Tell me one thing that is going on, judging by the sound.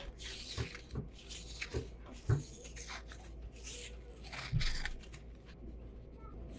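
Fingers rub and pick at a roll of tape close by, with scratchy rustles and soft thumps.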